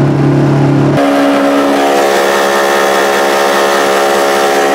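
An outboard motor switches to a higher, buzzing whine.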